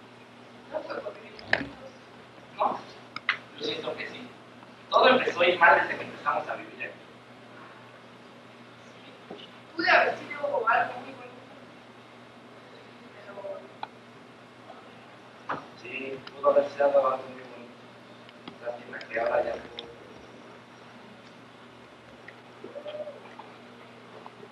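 A young woman speaks on a stage, heard from the audience in a room with some echo.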